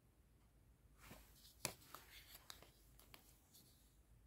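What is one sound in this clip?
Plastic wrapping crinkles softly as it is handled.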